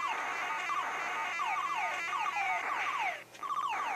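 Electronic explosion blips sound in a video game.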